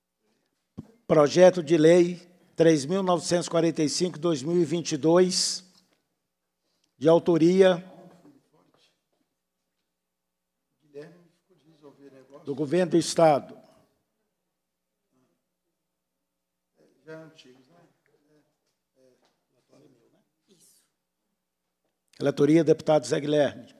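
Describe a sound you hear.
A man speaks calmly into a microphone in short bursts with pauses.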